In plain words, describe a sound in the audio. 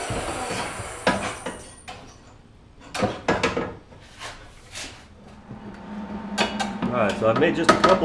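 A metal pipe knocks and scrapes against a car body.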